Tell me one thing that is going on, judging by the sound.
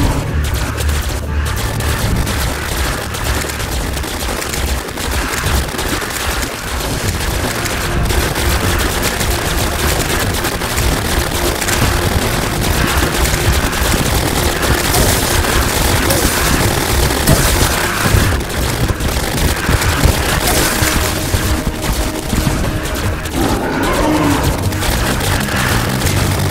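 Game weapons fire rapid magical bursts and explosions.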